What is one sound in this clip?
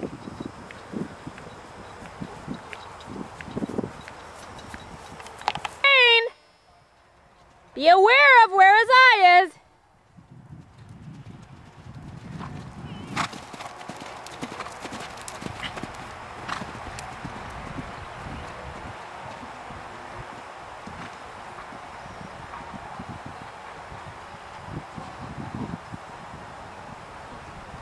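A horse canters, its hooves thudding on soft ground.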